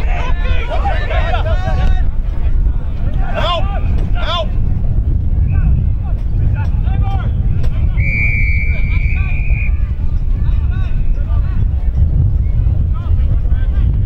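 Young men shout calls to each other across the field.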